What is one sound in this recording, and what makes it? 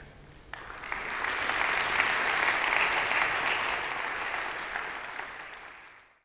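An audience applauds loudly, then the applause fades.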